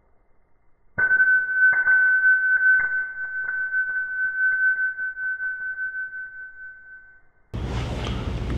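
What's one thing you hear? A small metal object lands on concrete and spins, ringing steadily as it rattles to a stop.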